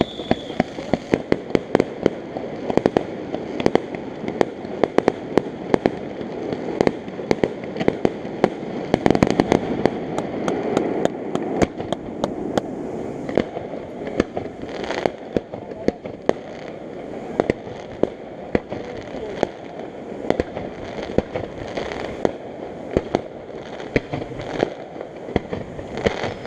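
Fireworks boom in the distance.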